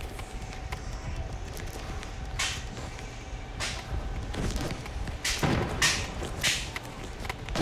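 Building pieces snap into place with sharp whooshing clicks.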